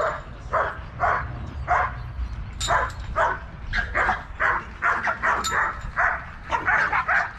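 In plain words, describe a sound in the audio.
A large dog barks loudly and repeatedly, close by.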